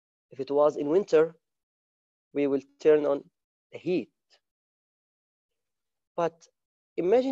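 A man speaks calmly in short phrases through a microphone on an online call.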